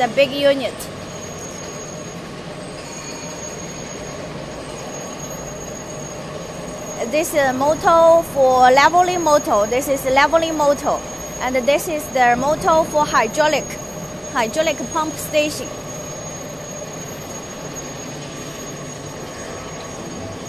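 Factory machinery hums steadily.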